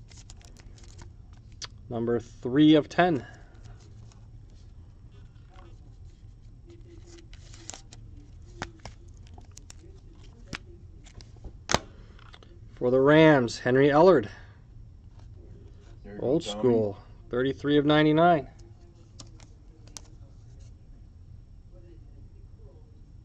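Cards and plastic sleeves rustle and click as hands handle them.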